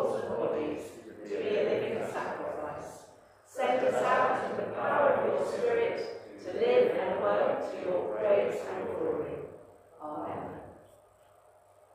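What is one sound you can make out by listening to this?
A woman speaks calmly through a microphone in an echoing room.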